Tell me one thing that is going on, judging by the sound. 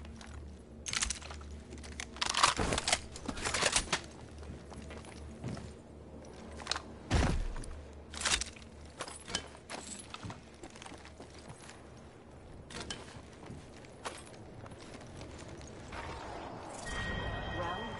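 Short clicks and clatters sound as items are picked up.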